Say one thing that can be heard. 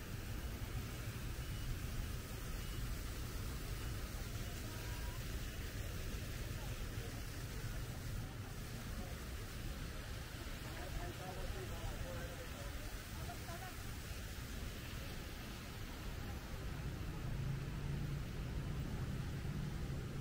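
Outdoors, a steady wash of city noise hums.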